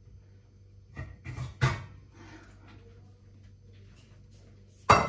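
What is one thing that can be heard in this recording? Metal pots clang together.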